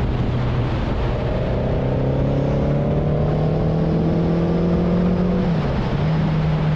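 A motorcycle engine revs up, rising in pitch, then drops as it shifts gear.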